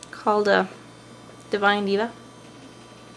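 A young woman speaks close to the microphone in two short bursts.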